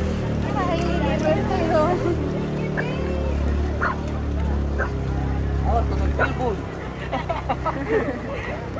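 People in a crowd talk and call out nearby outdoors.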